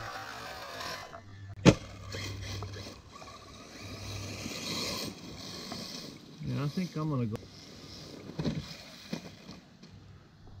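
A small remote-controlled car's electric motor whines as it drives over grass.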